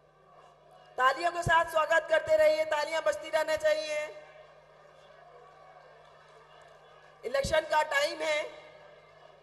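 A large crowd chants and cheers loudly in unison.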